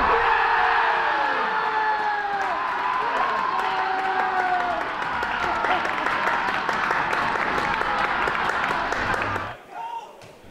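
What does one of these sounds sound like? A crowd cheers outdoors after a goal.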